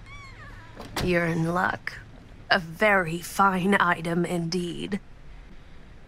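An elderly woman speaks warmly.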